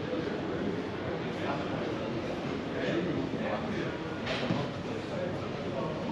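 Footsteps tap on cobblestones nearby.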